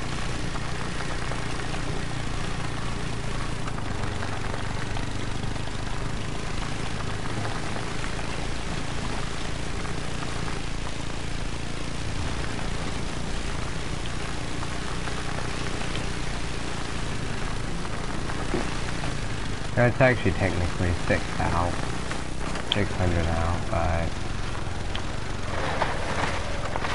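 A quad bike engine drones steadily while driving over rough ground.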